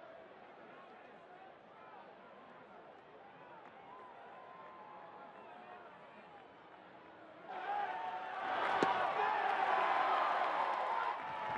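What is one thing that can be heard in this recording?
A large stadium crowd murmurs outdoors, then cheers loudly.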